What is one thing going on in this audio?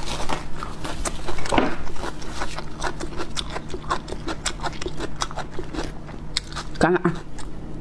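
A woman chews food with wet smacking sounds close to a microphone.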